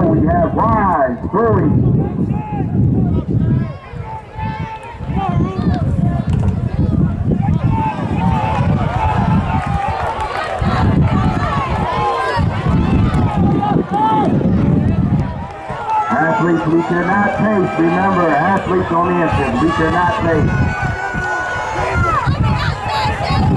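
A crowd of young spectators shouts and cheers outdoors.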